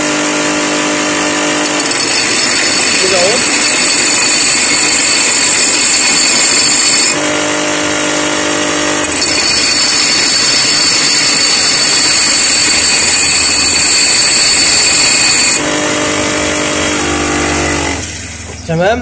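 A bench grinder whines loudly as steel is ground against its spinning wheel.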